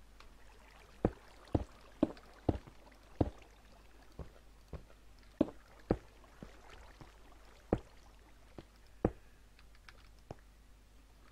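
Footsteps thud on stone at an uneven pace.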